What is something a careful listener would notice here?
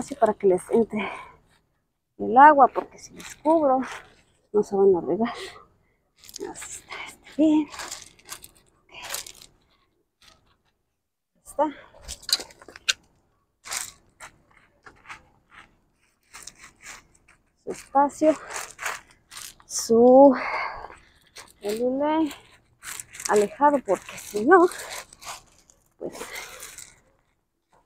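Gravel crunches and rattles as a hand digs into it.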